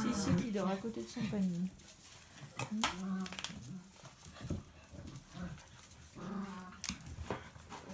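Small dogs whine and yelp excitedly.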